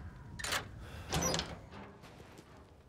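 A metal gate creaks open.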